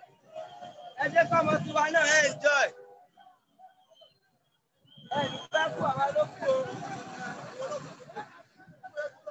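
A crowd of people chants and shouts loudly outdoors.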